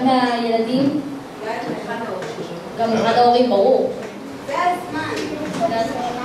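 A girl speaks into a microphone.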